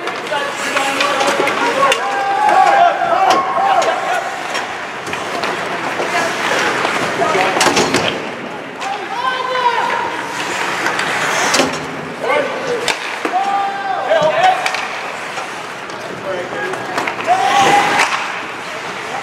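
Spectators shout and cheer in an echoing rink.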